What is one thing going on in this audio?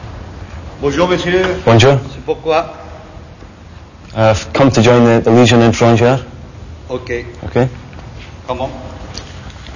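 A man talks with animation close by in an echoing hallway.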